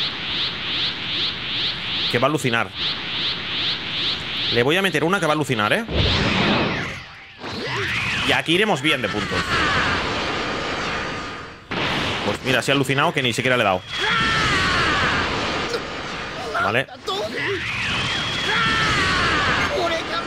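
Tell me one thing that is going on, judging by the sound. Energy blasts roar and whoosh in a video game.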